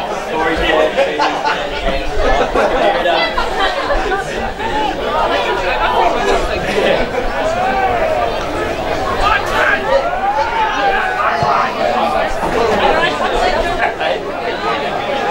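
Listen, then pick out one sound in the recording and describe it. Players shout to each other.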